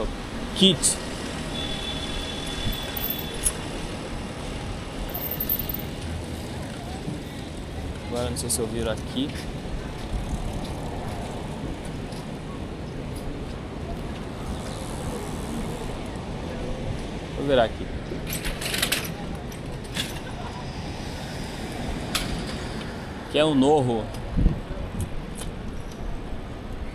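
Wind rushes past a moving bike.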